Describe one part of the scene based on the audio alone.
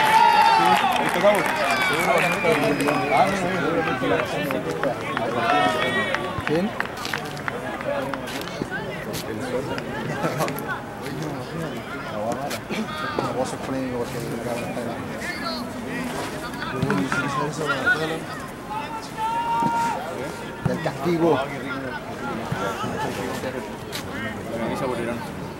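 A crowd of men and women shout and call out across an open field outdoors.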